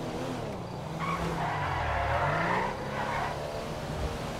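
Car tyres squeal on the road.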